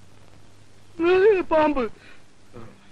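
A man cries out loudly nearby.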